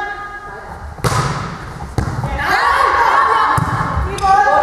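A volleyball is struck by hand with a sharp smack.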